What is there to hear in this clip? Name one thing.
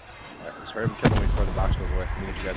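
Gunshots ring out nearby.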